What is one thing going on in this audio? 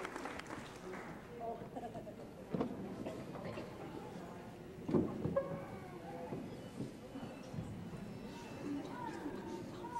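A crowd murmurs and chatters quietly.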